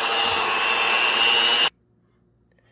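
An electric hand mixer whirs loudly.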